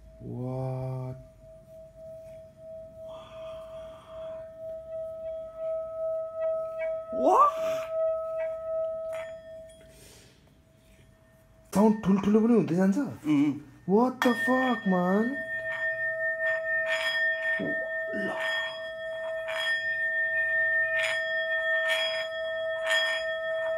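A singing bowl rings with a steady humming tone as a mallet is rubbed around its rim.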